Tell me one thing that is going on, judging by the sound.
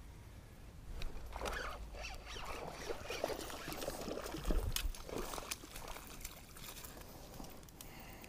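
A fishing reel whirs and clicks as it is wound in.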